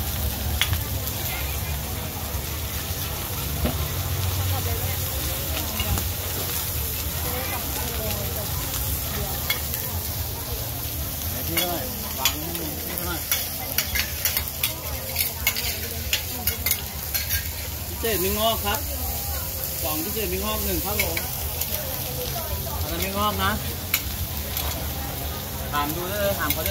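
A metal spatula scrapes and clanks against a hot griddle.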